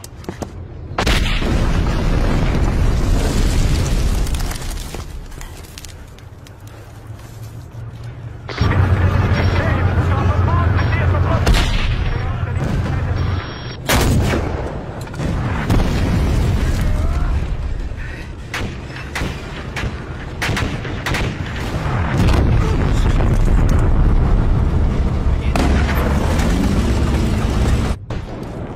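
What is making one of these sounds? Tank engines rumble deeply and tracks clank.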